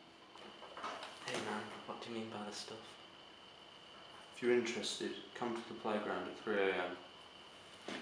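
A young man talks quietly and calmly close by.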